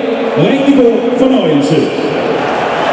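A crowd chants loudly in the stands.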